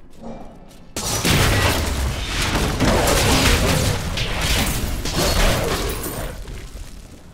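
Weapons strike and clash in a loud fight.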